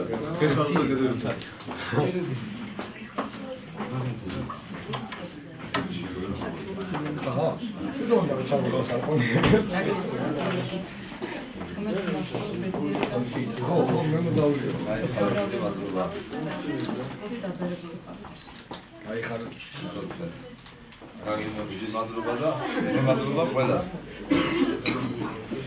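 Several men and women chat.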